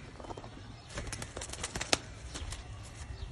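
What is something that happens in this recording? A pigeon flaps its wings in a quick burst.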